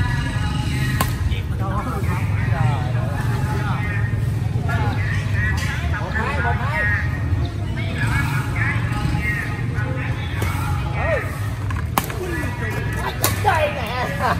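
Badminton rackets strike a shuttlecock with sharp pops outdoors.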